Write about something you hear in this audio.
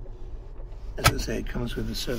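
A glove box lid snaps shut.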